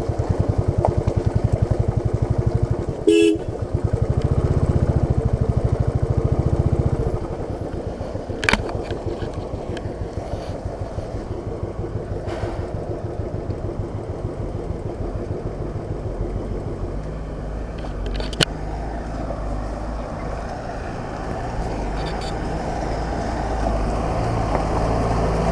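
Tyres crunch over a rough dirt road.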